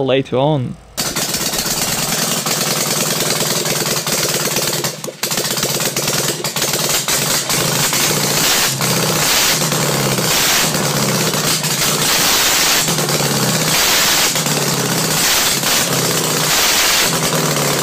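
A small engine runs loudly and roughly.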